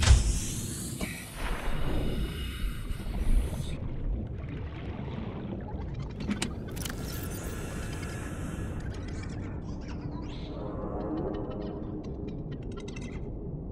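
A low underwater rumble goes on steadily.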